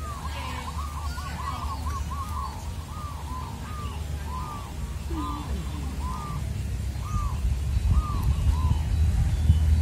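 A bird calls repeatedly in short, rising chirps from a tree.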